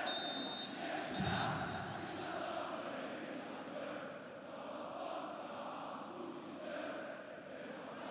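A stadium crowd murmurs and chants steadily in the distance.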